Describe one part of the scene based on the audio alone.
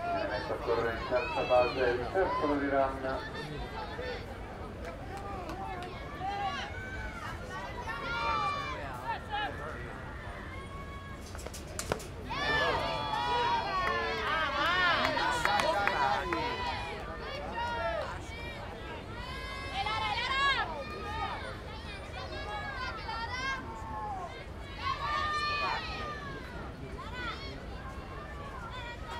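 Young women shout and chant encouragement from across an outdoor field.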